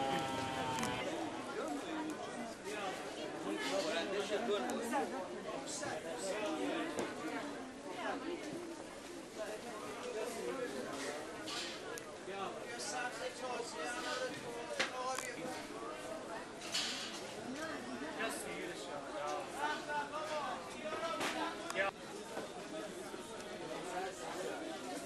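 A crowd of people chatters all around in a busy outdoor market.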